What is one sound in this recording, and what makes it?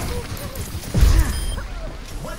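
Game explosions boom.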